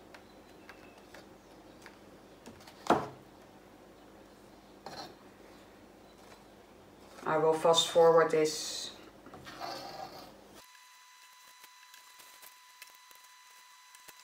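A palette knife scrapes wet paint across a board.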